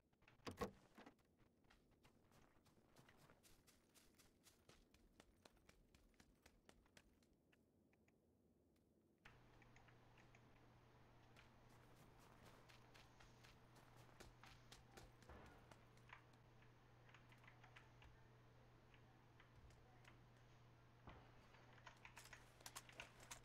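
Footsteps crunch steadily on the ground.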